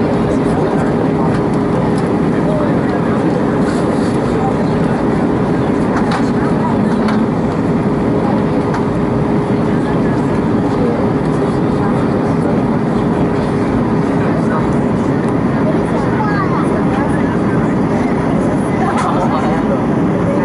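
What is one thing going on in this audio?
Jet engines roar with a steady drone inside an airliner cabin.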